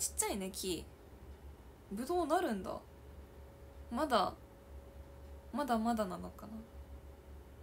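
A young woman speaks softly in short phrases, close to a microphone.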